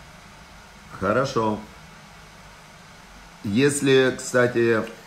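A middle-aged man speaks calmly and close up, in short bursts.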